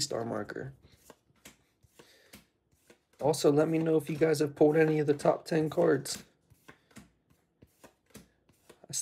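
Trading cards rustle and slide in a hand.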